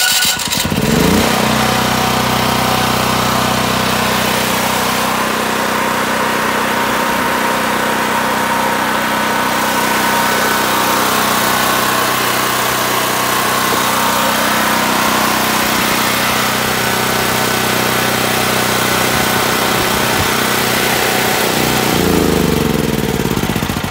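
A generator engine runs with a steady, loud drone close by.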